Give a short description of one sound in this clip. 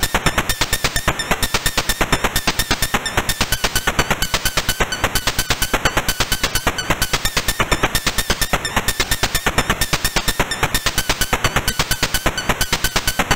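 Rapid electronic beeps tick steadily.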